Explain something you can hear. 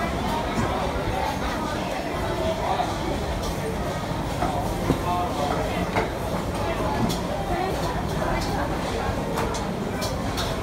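A crowd of people chatter nearby in a busy indoor space.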